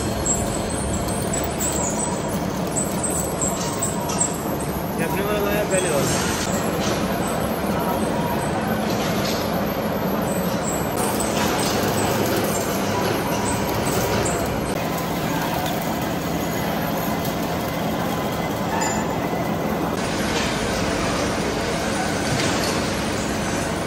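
A large lathe hums steadily as it turns.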